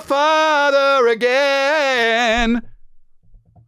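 A man sings loudly in a long wailing tone close to a microphone.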